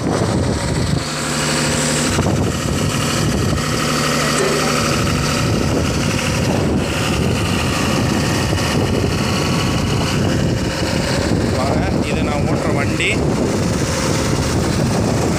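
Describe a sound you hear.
A truck engine idles nearby with a steady low rumble.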